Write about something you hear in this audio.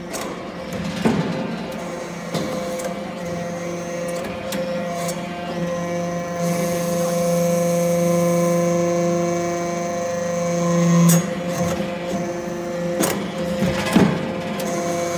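Metal knocks and clanks as a press compacts chips into pucks.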